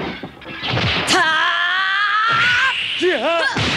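A woman snarls angrily.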